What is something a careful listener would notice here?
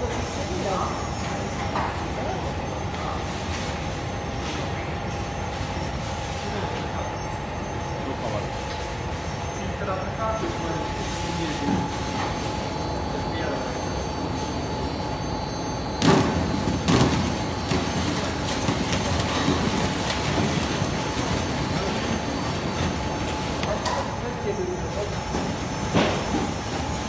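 Industrial machinery hums steadily in a large echoing hall.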